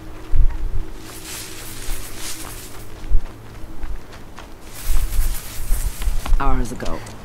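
Leafy bushes rustle as something pushes through them.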